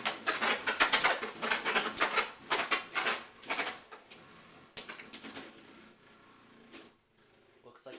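Spinning tops whir and clash against each other in a plastic arena, with rapid clacking knocks.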